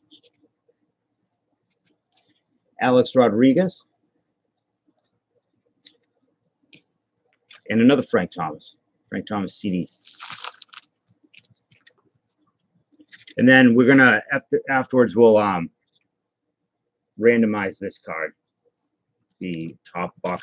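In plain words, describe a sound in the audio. Trading cards rustle and flick between fingers.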